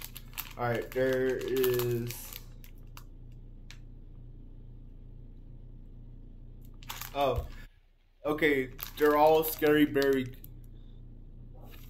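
A plastic wrapper crinkles in hands.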